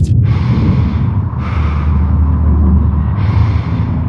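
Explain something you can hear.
A heavy metal door slides open with a mechanical hiss.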